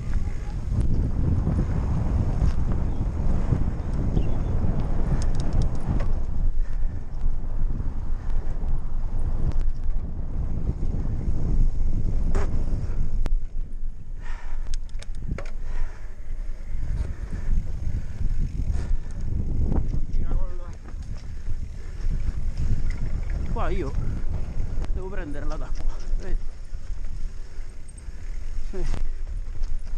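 Bike tyres rattle and crunch over a bumpy dirt trail.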